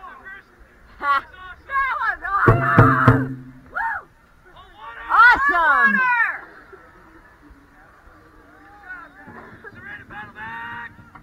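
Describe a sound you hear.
Young women shout and chant loudly together close by.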